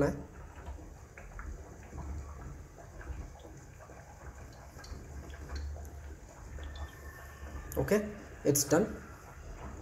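Oil pours quietly into an empty pan.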